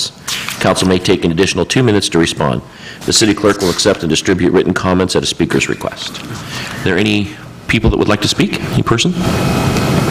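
A man speaks calmly through a microphone in a room.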